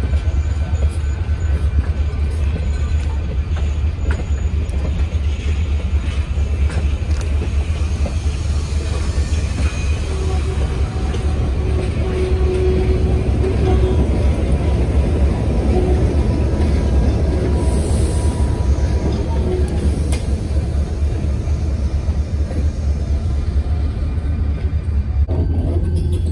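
Train wheels rumble steadily along the rails close by.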